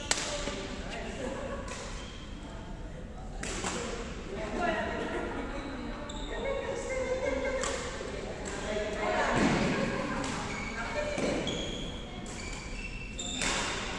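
Shuttlecocks are struck with sharp pops of badminton rackets in a large echoing hall.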